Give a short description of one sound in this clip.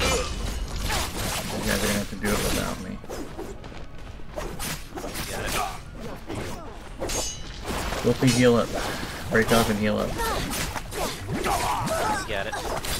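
Swords clash and slash in game combat.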